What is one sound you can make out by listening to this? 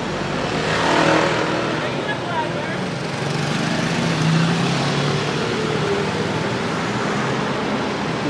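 Motorcycle engines rumble past nearby.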